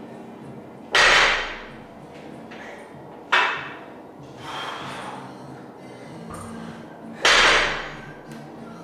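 Barbell plates thud and clank onto a wooden floor.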